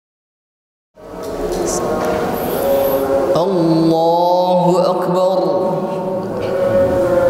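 A young man chants in a long, melodic voice into a microphone, in a room with a slight echo.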